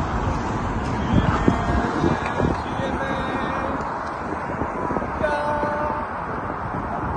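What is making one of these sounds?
Traffic rumbles steadily outdoors.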